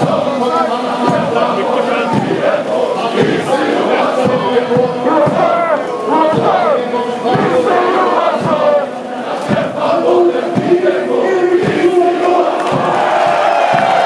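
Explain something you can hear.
A flag flaps close by.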